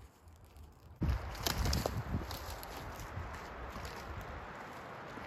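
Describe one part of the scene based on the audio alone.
Wind rushes through pine trees.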